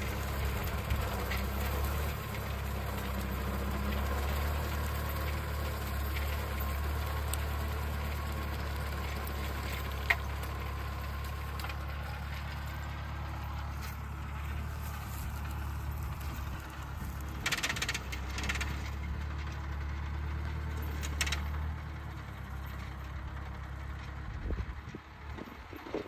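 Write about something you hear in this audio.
A mower on a tractor chops through dry grass and brush.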